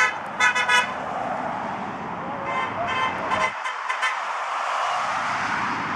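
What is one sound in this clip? A car drives past on a nearby road.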